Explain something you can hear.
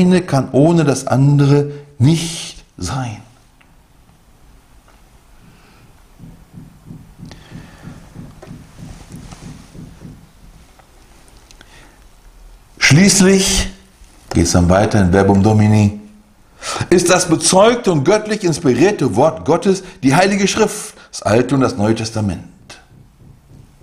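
A middle-aged man speaks calmly and clearly into a microphone, with pauses.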